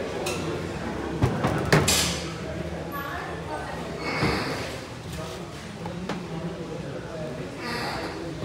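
Stiff fibre boards knock and scrape softly as they are handled.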